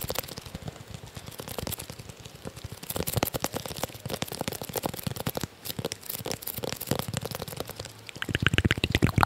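A wooden block is tapped and scratched right against a microphone.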